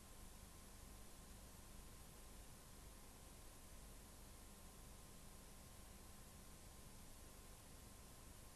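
Steady static hiss crackles throughout.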